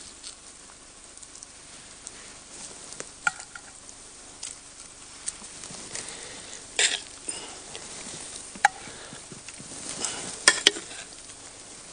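A metal fork scrapes and clinks against a pan.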